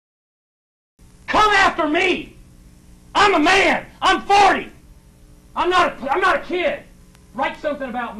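A young man speaks loudly through a microphone in an echoing room.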